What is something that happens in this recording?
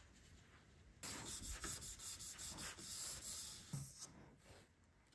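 A hand rubs and presses something firmly in place.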